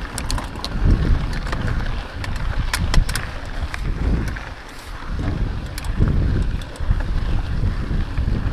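Gravel and small stones click under the bicycle's tyres.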